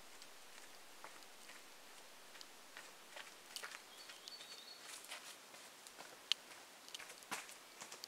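Footsteps crunch on a dry forest trail.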